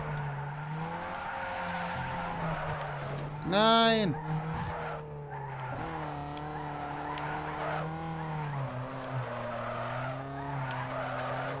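A car engine revs steadily, rising and falling in pitch.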